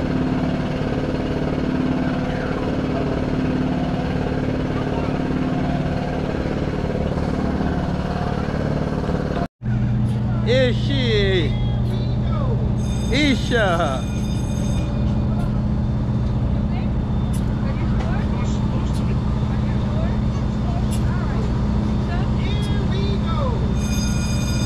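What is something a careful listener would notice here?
A fairground ride's motor hums steadily.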